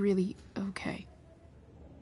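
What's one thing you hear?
A young woman speaks briefly and hesitantly, close by.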